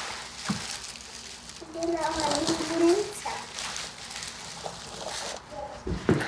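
Plastic bags rustle as they are handled.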